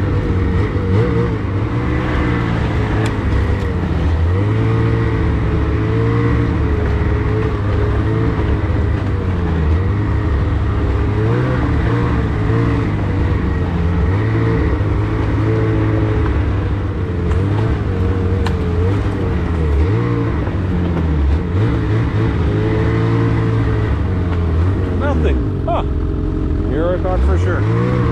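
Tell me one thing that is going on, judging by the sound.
A snowmobile engine drones close by as the snowmobile rides, its pitch rising and falling.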